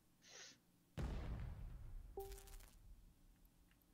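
An explosion booms and rumbles away.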